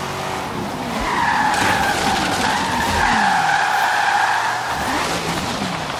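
Tyres skid and screech on the road.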